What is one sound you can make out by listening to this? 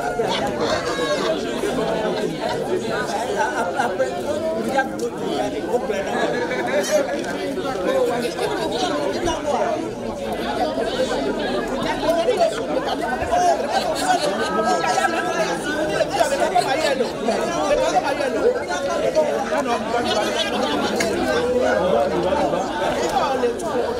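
A crowd of men and women chatter and greet each other outdoors.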